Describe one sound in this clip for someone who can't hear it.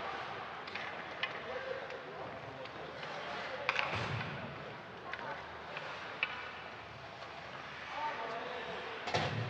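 Ice skates scrape and carve across an ice rink in a large echoing arena.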